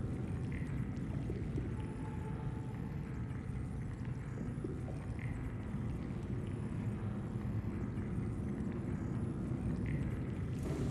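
Soft electronic beeps chime now and then.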